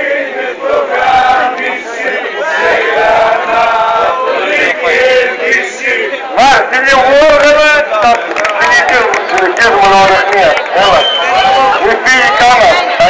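A crowd of adults sings and chants loudly close by, outdoors.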